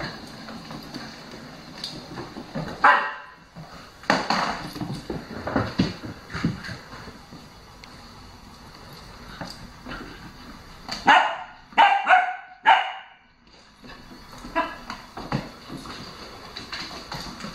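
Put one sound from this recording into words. A small dog's paws patter and scrabble on a wooden floor.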